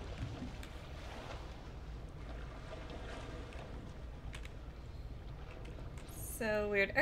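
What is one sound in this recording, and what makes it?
Waves wash against a boat's hull.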